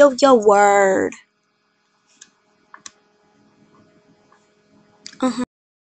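A girl speaks loudly and with animation close to the microphone.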